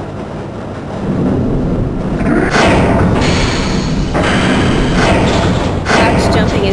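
A heavy metal door rumbles and grinds open.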